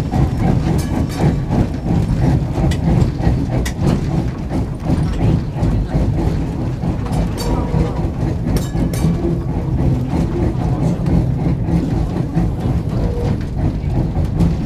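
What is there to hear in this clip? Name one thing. An old electric tram rumbles along, heard from inside.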